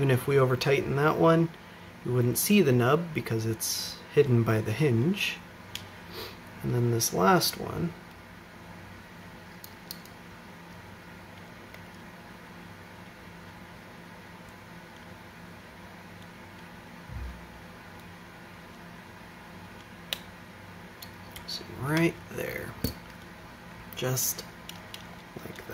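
Small plastic parts click and tap together under handling.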